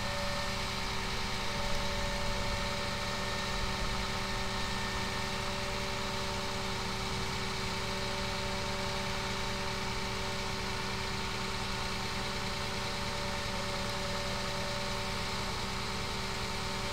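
A fire truck's engine hums steadily nearby.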